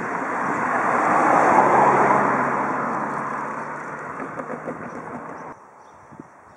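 A car drives past close by on the road.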